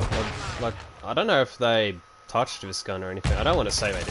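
Gunshots crack from a rifle in short bursts.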